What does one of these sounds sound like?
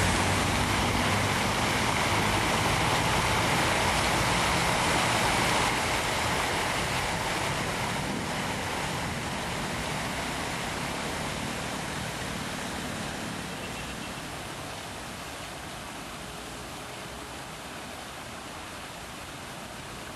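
Water from a fountain splashes and rushes loudly, then grows softer.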